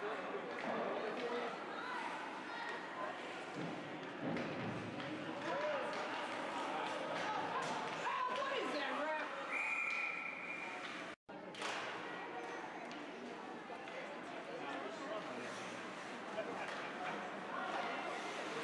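Skates scrape across ice in a large echoing rink.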